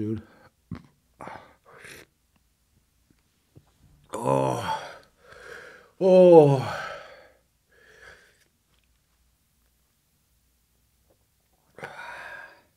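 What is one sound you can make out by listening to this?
A man sighs and speaks quietly into a close microphone.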